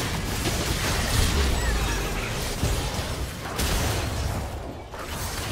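Magic blasts and weapon strikes crash and whoosh in a busy video game fight.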